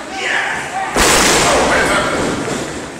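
A wrestler crashes down hard onto the ring mat with a loud thud.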